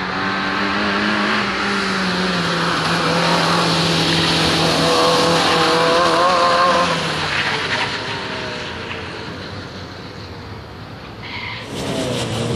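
A rally car engine revs hard as it speeds past and fades away.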